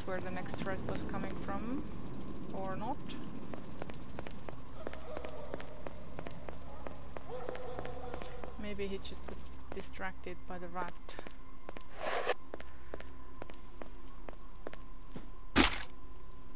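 Footsteps thud steadily across a hard stone floor.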